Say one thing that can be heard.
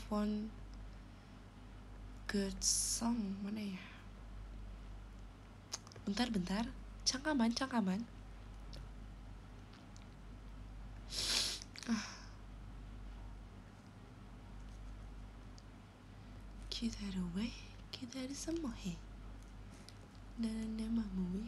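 A young woman speaks softly and casually, close to a microphone, with pauses.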